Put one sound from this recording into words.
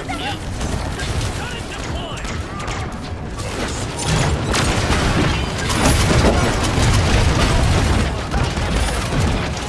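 Rapid gunfire rattles and booms in a video game.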